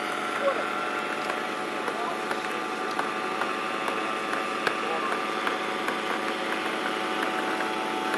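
A small remote-controlled helicopter buzzes steadily overhead with a high whine.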